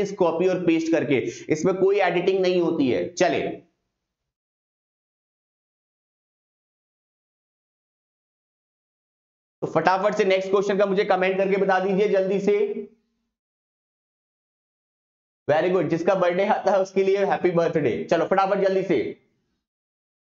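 A man speaks with animation into a close microphone, in bursts with long pauses.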